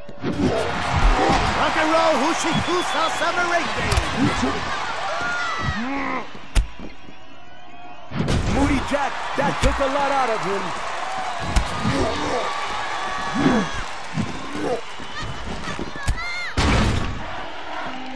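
Heavy bodies slam onto a wrestling mat with deep thuds.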